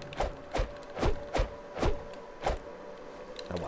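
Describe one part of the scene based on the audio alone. Footsteps thud in quick, even steps.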